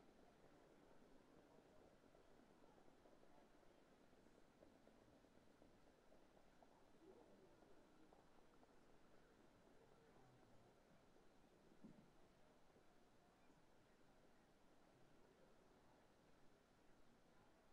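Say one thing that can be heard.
Horses' hooves thud on a dirt track.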